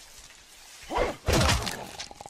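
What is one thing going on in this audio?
An axe chops into wood with heavy thuds.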